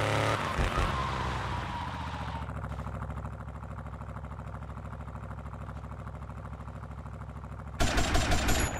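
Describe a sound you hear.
A car engine idles with a steady, pulsing rumble.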